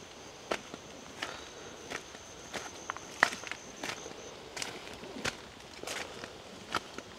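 Footsteps crunch on dry leaves and twigs along an outdoor path.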